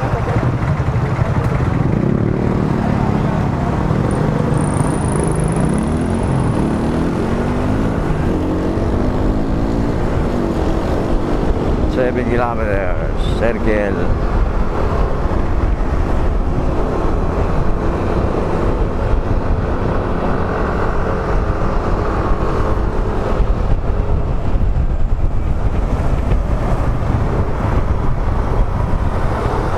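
Wind rushes loudly over a helmet microphone.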